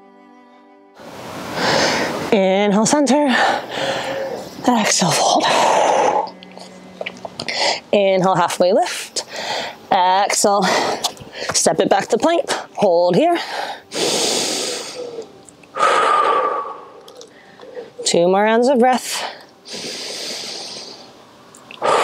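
A young woman speaks calmly and clearly, giving instructions close to a microphone.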